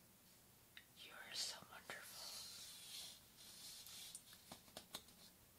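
Fingernails scratch across a foam surface.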